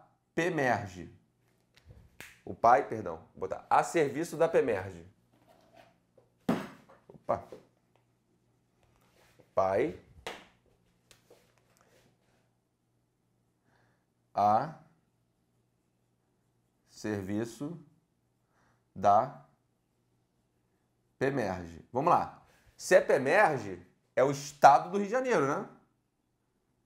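A man lectures calmly in short bursts, close to a microphone.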